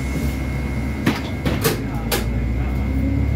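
Loose fittings in a bus rattle and clatter as it drives.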